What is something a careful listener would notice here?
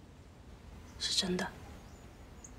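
A young woman speaks softly and briefly.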